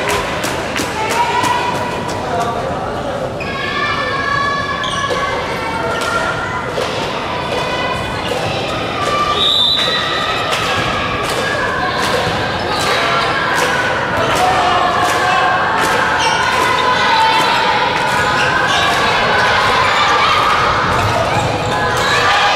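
Children's voices shout and cheer throughout a large echoing hall.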